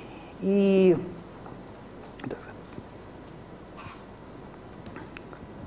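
Paper pages rustle as a book is handled.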